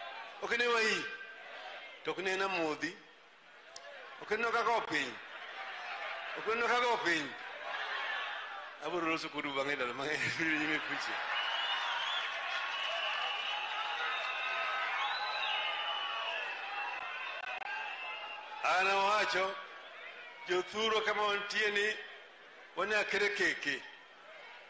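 An elderly man speaks with animation into a microphone over loudspeakers, in short bursts.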